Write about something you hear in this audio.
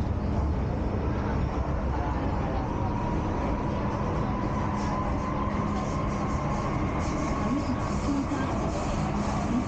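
A subway train rumbles and rattles steadily along the tracks.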